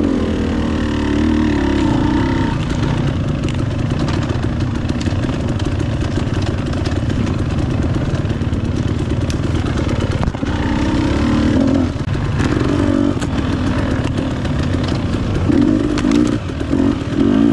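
A dirt bike engine revs and putters loudly up close.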